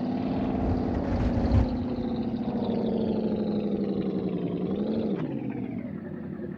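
Tyres rumble over wooden bridge planks.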